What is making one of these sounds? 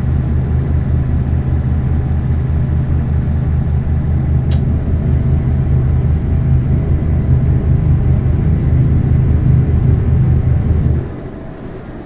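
A truck engine drones steadily with a deep, throbbing hum.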